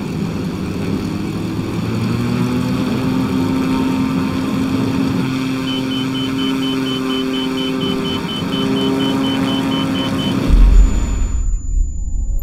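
A small propeller plane's engine roars steadily and rises in pitch.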